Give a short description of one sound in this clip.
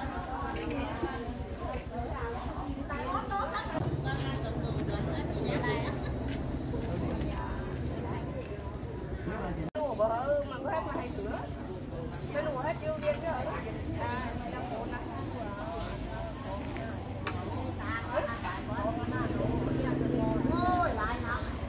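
A crowd murmurs in the background, outdoors.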